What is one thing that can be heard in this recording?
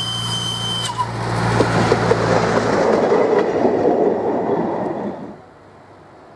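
Steel wheels clatter on rails close by.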